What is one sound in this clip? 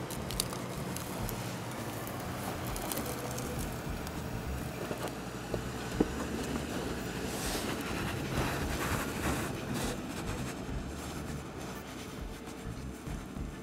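Tyres crunch over dry dirt and brush.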